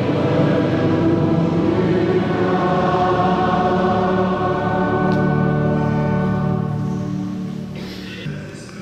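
A large crowd sings together in a big echoing hall.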